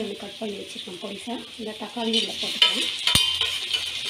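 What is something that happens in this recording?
A spoon scrapes chopped tomatoes off a metal plate into a pan.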